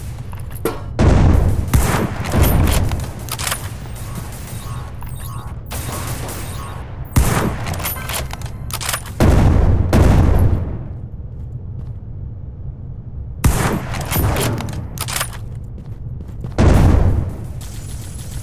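Sniper rifle shots boom loudly, each followed by a ringing echo.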